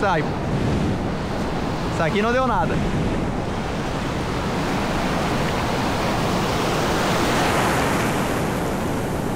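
Churning water rushes and splashes steadily close by.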